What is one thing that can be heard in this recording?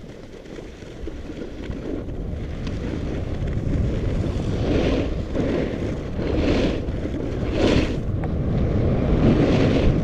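Wind rumbles loudly across a close microphone.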